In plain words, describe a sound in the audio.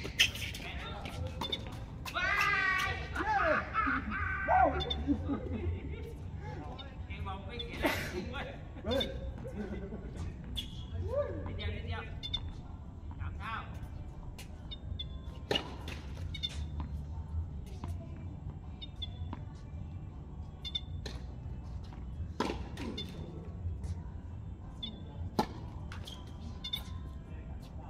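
Tennis balls are struck with rackets, with sharp pops now and then.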